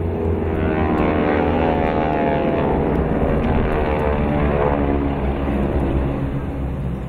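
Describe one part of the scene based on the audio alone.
Jet planes roar overhead, their pitch falling as they pass and fade.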